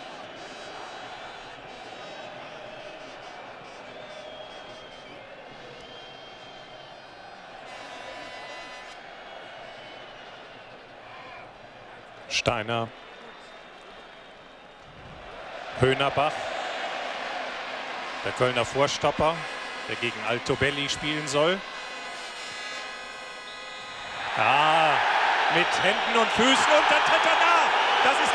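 A large stadium crowd murmurs and then roars loudly.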